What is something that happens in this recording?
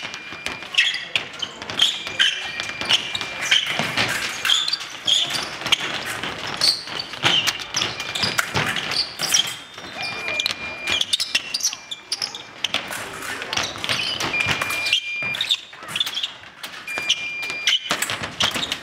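Electronic scoring beeps sound repeatedly.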